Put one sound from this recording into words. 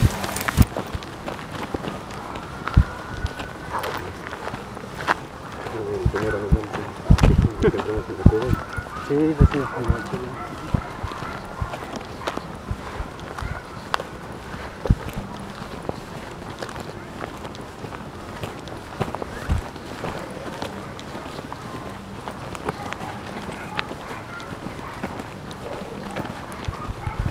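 Footsteps crunch steadily on a gravel path outdoors.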